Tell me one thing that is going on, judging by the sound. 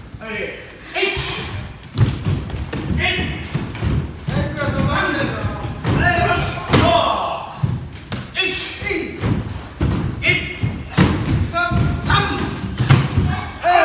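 A group of men and women shout together in sharp bursts, echoing in a large hall.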